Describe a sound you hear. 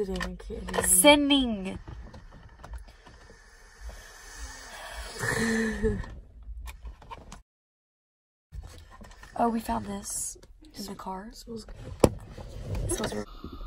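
A teenage girl laughs close to a microphone.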